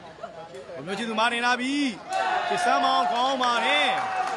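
Young men shout and cheer loudly.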